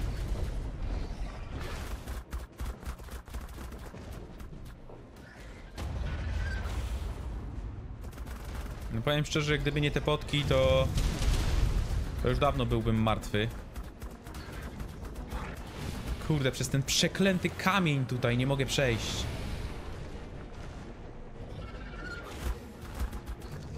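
A creature's fiery breath roars and crackles.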